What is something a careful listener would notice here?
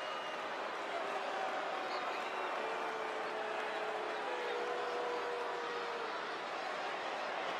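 A large crowd cheers steadily in a big echoing arena.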